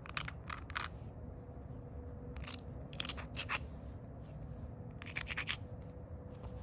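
A stone edge scrapes and grinds against an abrasive pad.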